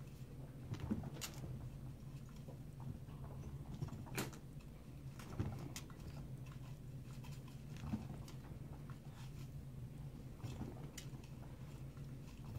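A small animal scurries softly across a padded cage floor.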